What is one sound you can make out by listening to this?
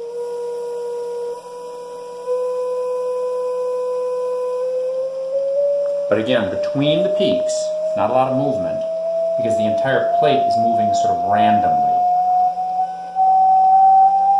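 A vibrating metal plate hums with a steady tone that slowly rises in pitch.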